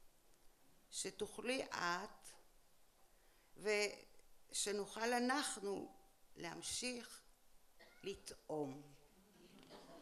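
An elderly woman reads aloud calmly into a microphone.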